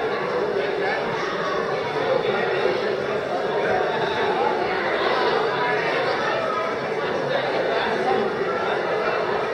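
A crowd of men and women chatter at once in a large echoing hall.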